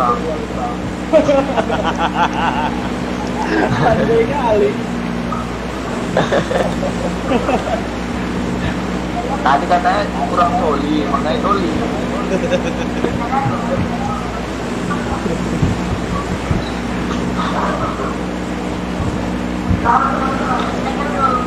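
A jet aircraft's engines drone steadily.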